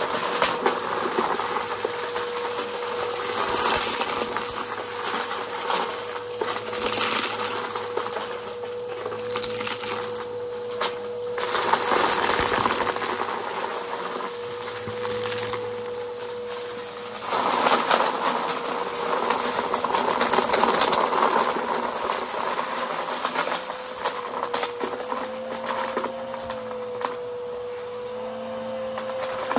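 A vacuum cleaner hums steadily close by.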